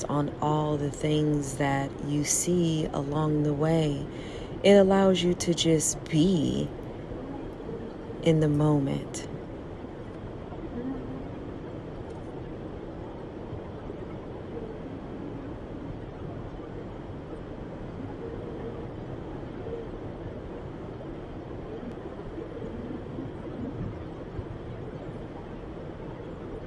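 Tyres hum on a highway, heard from inside a moving car.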